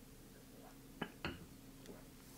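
A glass knocks softly as it is set down on a hard counter.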